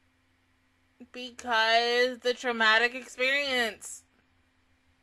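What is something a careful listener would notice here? A young woman exclaims in a drawn-out, rising and falling voice close to a microphone.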